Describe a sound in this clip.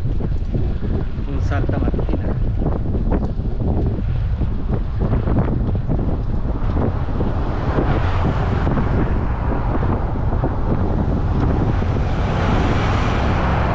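Wind buffets loudly outdoors with a low rumble.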